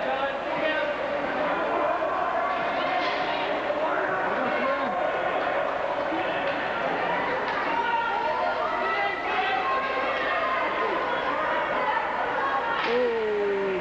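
Ice skates scrape across the ice.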